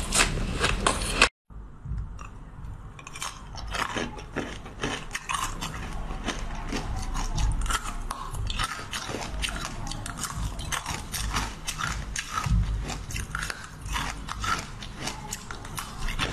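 A young woman crunches loudly on crisp food close to a microphone.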